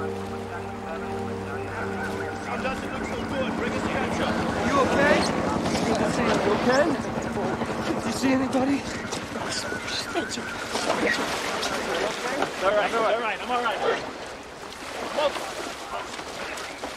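A river rushes steadily.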